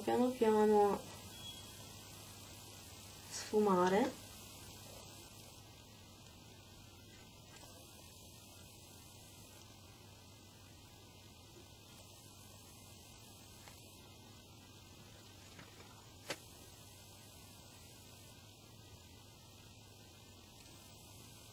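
A soft makeup brush brushes lightly across skin.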